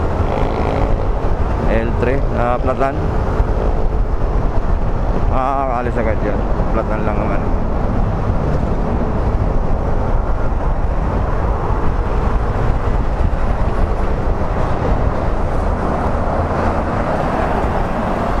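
Traffic rumbles nearby.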